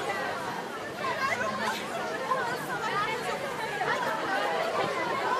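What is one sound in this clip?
Young women in a crowd cheer and shriek.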